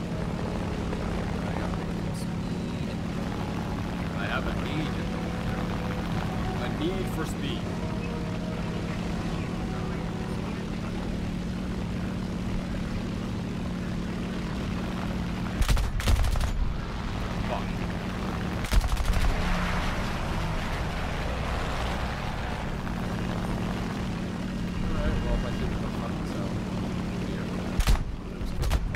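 A plane's engine drones steadily.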